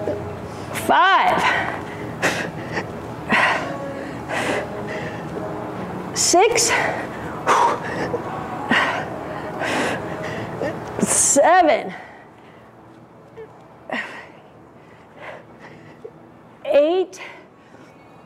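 A young woman groans with effort now and then.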